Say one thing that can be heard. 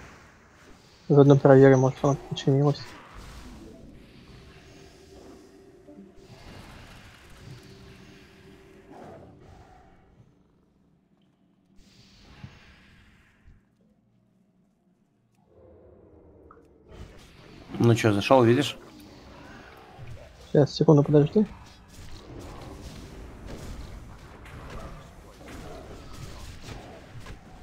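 Fantasy battle sound effects clash and whoosh.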